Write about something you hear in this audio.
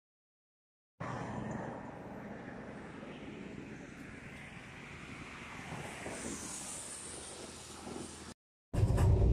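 Tyres hiss past on a wet road outdoors.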